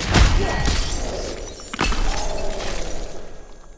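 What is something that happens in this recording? Flesh squelches and bones crunch in a gory fight.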